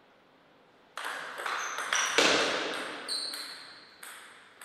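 A table tennis ball clicks sharply as it bounces and is struck.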